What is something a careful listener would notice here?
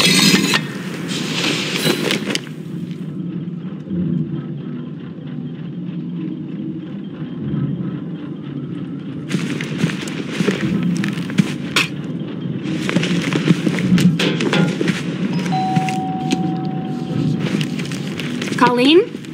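Heavy armoured footsteps thud on a floor.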